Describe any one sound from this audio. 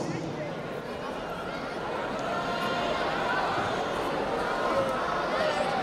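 A young man sings into a microphone, heard through loudspeakers in a large hall.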